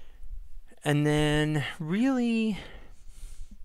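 A man speaks through a headset microphone in long, drawn-out, sing-song tones.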